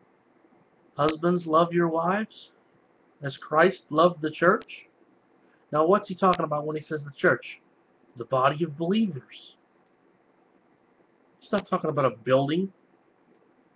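A middle-aged man speaks calmly and closely into a microphone, in short bursts with pauses.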